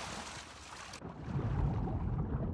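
Water rumbles dully as heard from underwater.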